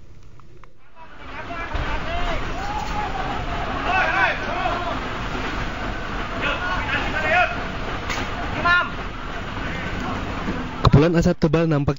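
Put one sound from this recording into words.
A large fire roars outdoors, with a steady rushing noise.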